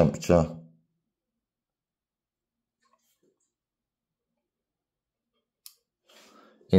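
A thermostat dial clicks as it turns.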